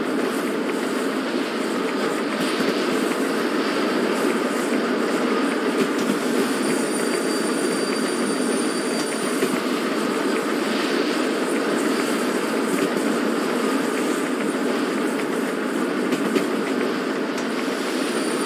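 A steam locomotive rumbles and clatters steadily along the rails.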